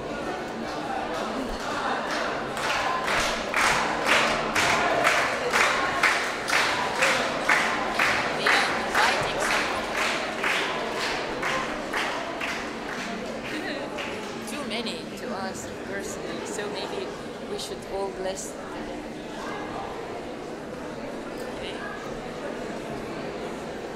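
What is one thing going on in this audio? A crowd of men and women chatter and murmur.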